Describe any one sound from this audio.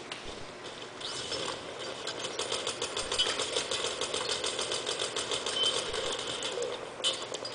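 Gunfire rattles rapidly from a video game through small speakers.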